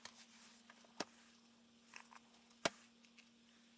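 A book knocks softly against a table.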